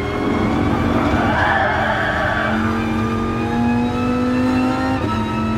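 A racing car engine roars at high revs, rising slightly in pitch.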